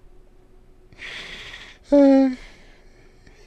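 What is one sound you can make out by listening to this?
A middle-aged man laughs softly.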